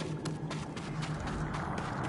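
Footsteps run up stone steps.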